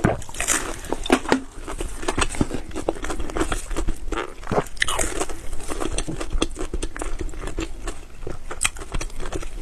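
Crisp pastry crackles as a woman's fingers tear it apart.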